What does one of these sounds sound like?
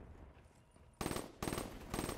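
A rifle fires in loud, quick bursts.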